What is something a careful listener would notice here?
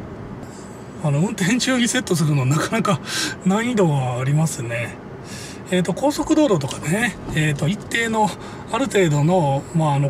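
A man talks calmly and cheerfully close by.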